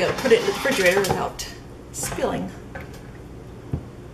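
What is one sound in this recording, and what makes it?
A cup is set down on a counter with a soft knock.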